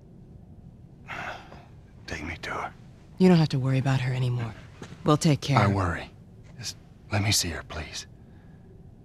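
A man speaks pleadingly, close by.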